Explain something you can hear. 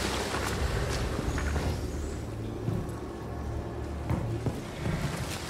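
Footsteps thud softly on wooden boards.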